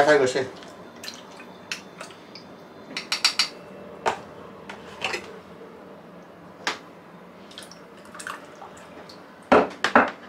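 A fork clinks against a cup.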